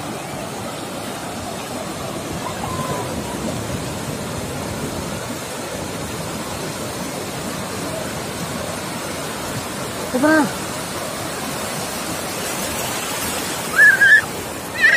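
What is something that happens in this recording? Surf breaks and washes up a beach.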